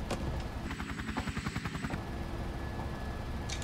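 An aircraft engine drones steadily.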